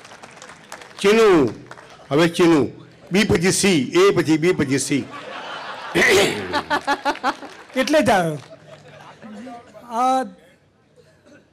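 An elderly man sings expressively through a microphone, in long drawn-out phrases.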